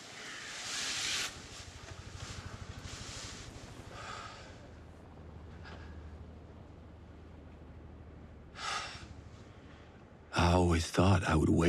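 Bedsheets rustle as a man sits up in bed.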